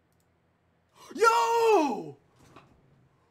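A young man shouts with excitement into a close microphone.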